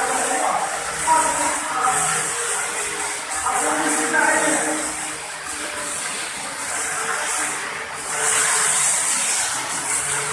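A squeegee scrapes across a wet floor.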